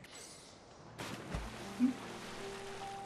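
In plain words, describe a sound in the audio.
A heavy splash hits water.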